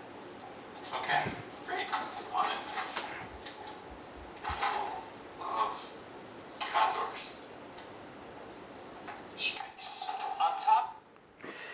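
A young man speaks calmly, heard through a loudspeaker in a room.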